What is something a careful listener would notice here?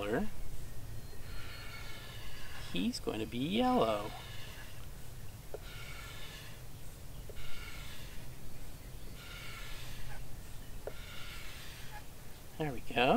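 A marker squeaks and scratches on paper in short strokes.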